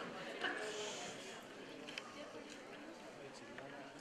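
A woman speaks cheerfully into a microphone in a large echoing hall.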